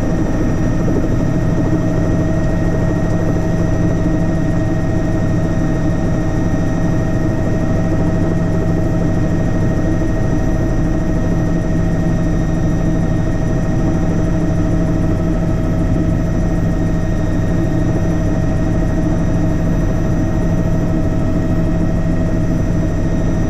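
A helicopter engine and rotor drone loudly and steadily inside the cabin.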